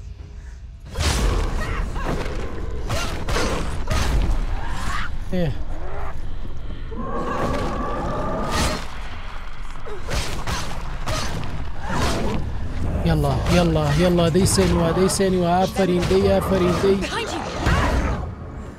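Swords clash and strike with sharp metallic hits.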